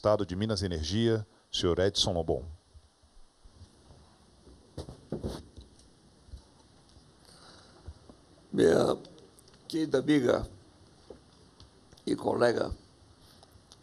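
A man speaks haltingly through a microphone, with long pauses.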